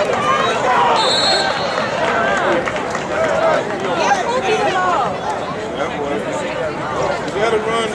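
Players on a sideline shout and cheer.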